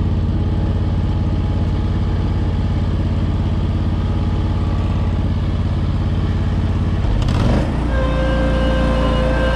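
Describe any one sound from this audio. A small engine runs close by with a steady low rumble.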